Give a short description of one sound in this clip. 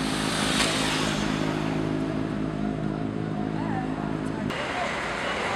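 A vehicle engine rumbles steadily nearby in the street.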